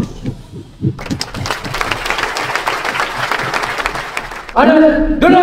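A crowd claps loudly in a large hall.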